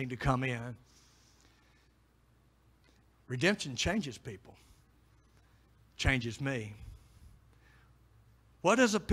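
A middle-aged man speaks into a microphone in short, measured phrases, with pauses between them.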